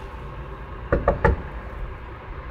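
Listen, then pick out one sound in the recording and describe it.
A hand knocks on a wooden door.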